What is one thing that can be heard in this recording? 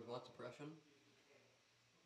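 A small plastic piece taps down on a table.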